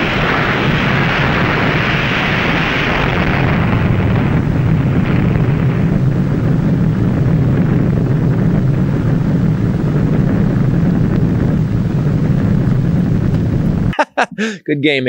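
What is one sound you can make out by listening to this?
A huge explosion roars in a deep, steady rumble.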